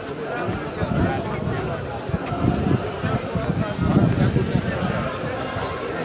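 A crowd of marchers chatters and calls out outdoors.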